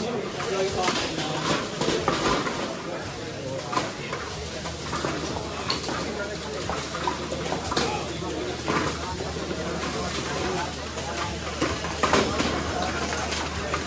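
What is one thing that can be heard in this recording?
Plastic balls knock and clatter against the robots and walls.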